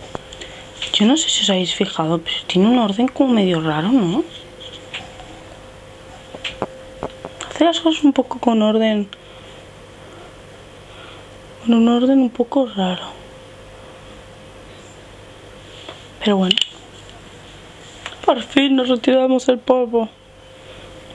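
A young woman talks calmly and close to a microphone, in short bursts.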